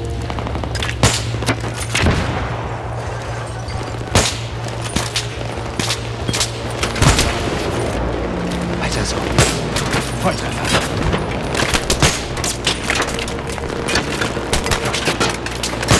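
Rifle shots crack out one at a time.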